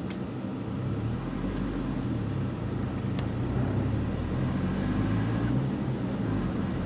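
A car engine revs up as the car pulls away.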